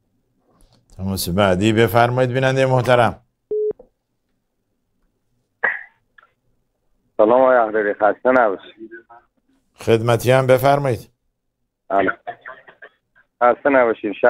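A middle-aged man speaks calmly and clearly into a close microphone, in bursts with pauses.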